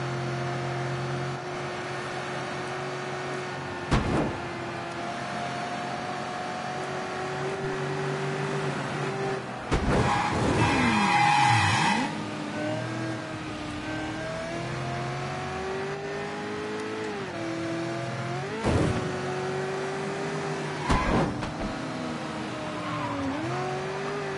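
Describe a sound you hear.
A car engine revs and hums steadily, rising and falling in pitch as the gears change.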